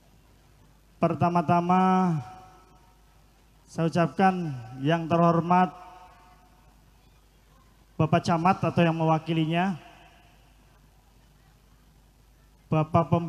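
A young man sings loudly into a microphone over loudspeakers, in short phrases with pauses.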